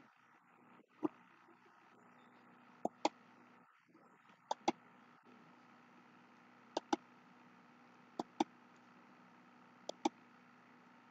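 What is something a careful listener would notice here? A man bites his fingernails with small sharp clicks.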